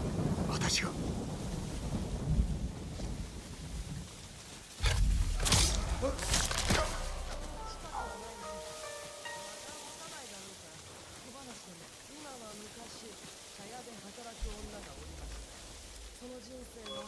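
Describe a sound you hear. Wind blows strongly through tall grass.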